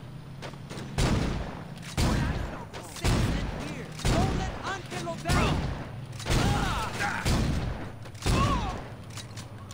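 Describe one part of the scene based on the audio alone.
Gunshots bang loudly in quick bursts.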